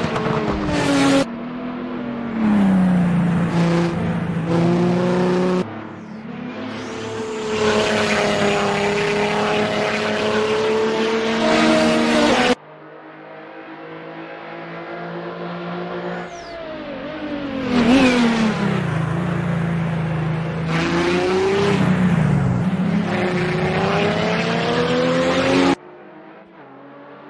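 A racing car engine roars, its revs rising and falling as it shifts gears.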